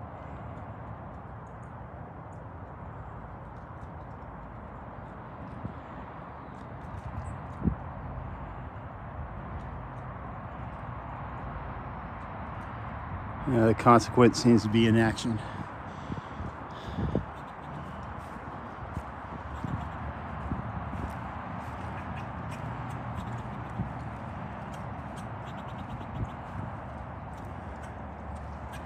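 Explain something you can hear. A dog's paws pad softly across grass.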